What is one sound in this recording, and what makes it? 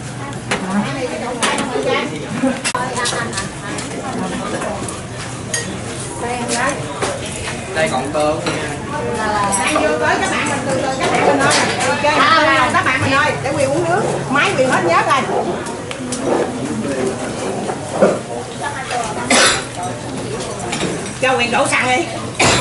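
A crowd of people chatter around tables.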